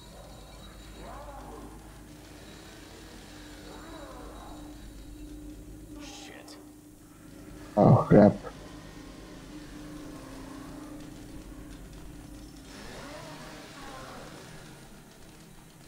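A man talks quietly and sparsely, close to a microphone.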